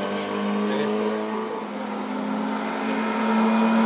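A second car engine revs loudly as it approaches up close.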